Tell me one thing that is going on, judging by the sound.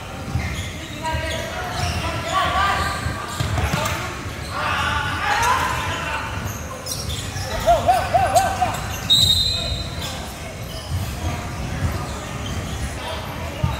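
A basketball bounces with dull thumps on a wooden floor.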